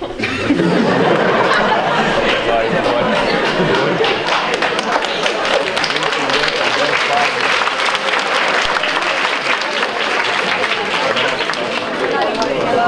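A large crowd of young people chatters loudly in an echoing hall.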